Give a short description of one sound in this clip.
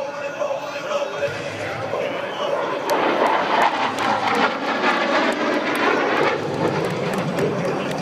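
A jet plane roars overhead.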